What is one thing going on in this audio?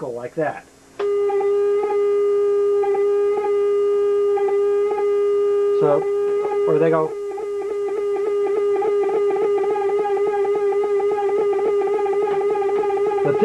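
An electronic tone sounds at a steady pitch, then begins to waver.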